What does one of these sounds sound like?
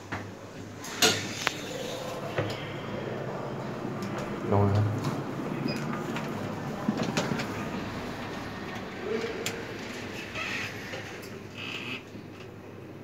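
Elevator doors slide open and closed.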